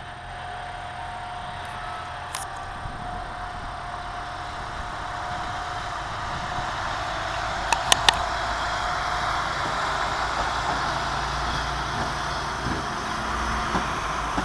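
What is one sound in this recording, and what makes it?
A train's engine hums and grows louder as the train approaches.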